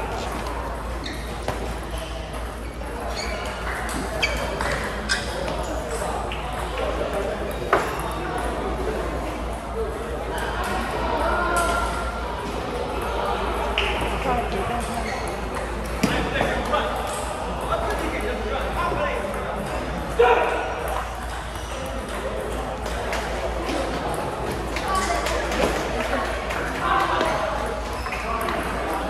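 A crowd of players and onlookers chatters in the background.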